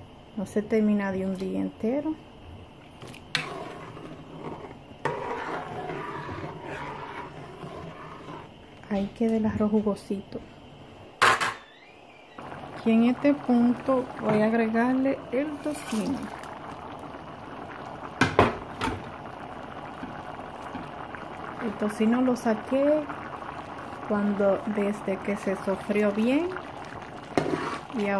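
A metal spoon stirs and scrapes against a pot.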